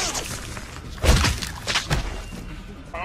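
Heavy thuds sound during a close struggle.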